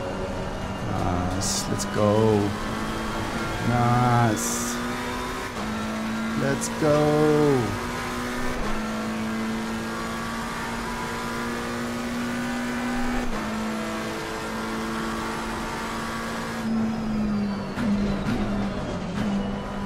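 A racing car engine roars and revs up through the gears.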